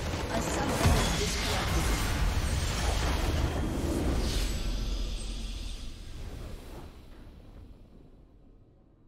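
A huge crystal explosion booms and rumbles, then slowly fades.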